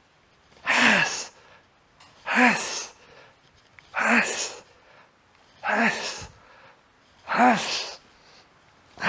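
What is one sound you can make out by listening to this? A man grunts and exhales forcefully with each effort, close to a microphone, at a steady rhythm.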